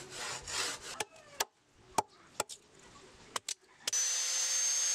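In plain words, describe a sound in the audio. A chisel knocks sharply into wood.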